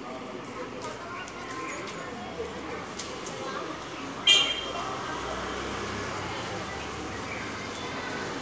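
A hose sprays water with a steady hiss.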